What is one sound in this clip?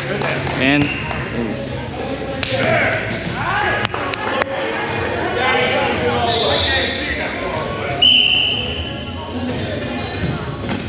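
Several adults talk and call out in a large echoing gym.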